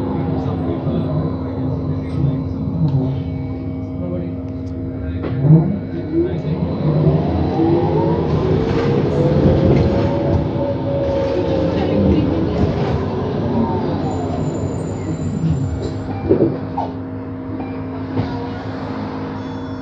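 Passing cars swish by outside.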